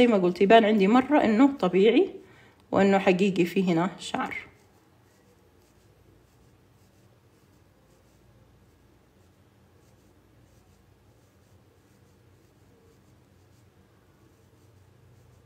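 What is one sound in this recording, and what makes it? A pencil scratches softly across a rubbery surface in short strokes.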